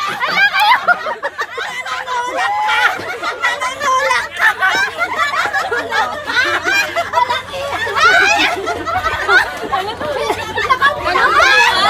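A young woman shouts and cheers with animation nearby.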